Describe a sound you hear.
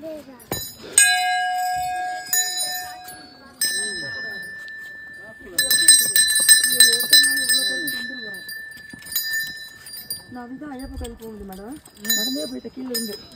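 Small metal bells ring out and ring on as a young girl strikes them.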